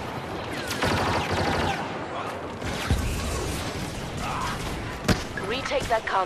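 Laser blasters fire in rapid bursts.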